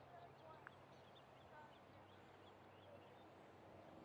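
A cricket player's footsteps thud softly on grass as he runs in to bowl.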